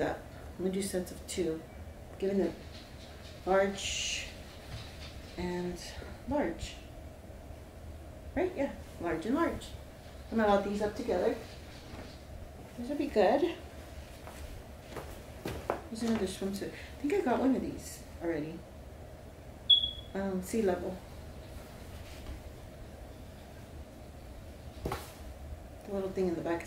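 Clothes rustle as a woman unfolds them.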